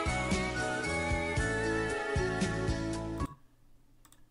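Electronic music with a melody plays, then stops abruptly.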